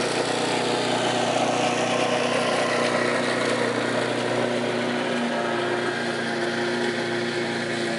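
A lawn mower engine roars nearby and then fades as it moves away.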